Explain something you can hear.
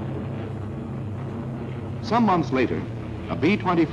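Propeller engines of a large plane drone steadily.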